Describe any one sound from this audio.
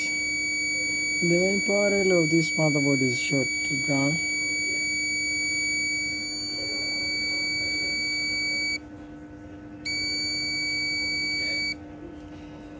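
A multimeter beeps with a steady high tone.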